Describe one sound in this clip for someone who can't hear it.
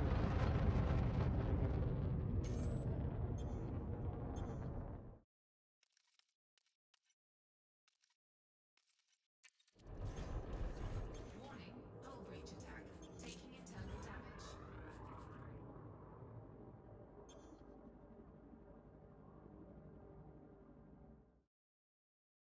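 A spaceship's engine rumbles low and steady.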